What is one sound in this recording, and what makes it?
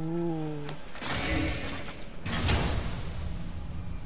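A heavy metal chest lid rumbles and creaks open.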